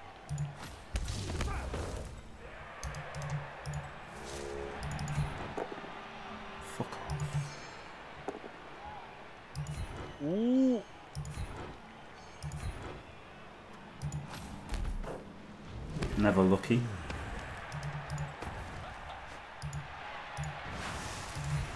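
Game sound effects thud and chime.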